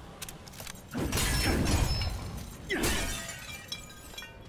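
A heavy blow strikes with a loud thud.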